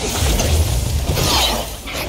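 Fire bursts with a crackling whoosh.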